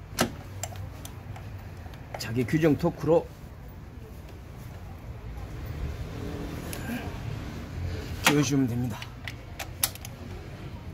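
A metal tool clicks and taps against engine parts.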